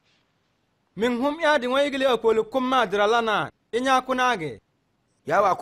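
A man speaks calmly and earnestly, close by.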